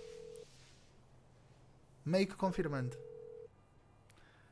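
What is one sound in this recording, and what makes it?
A phone line rings with a steady beeping tone.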